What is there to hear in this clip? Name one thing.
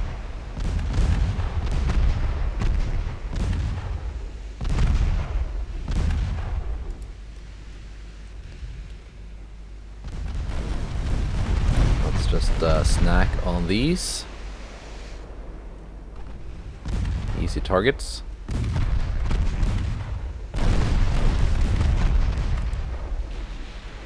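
Heavy naval guns boom in repeated rolling bursts.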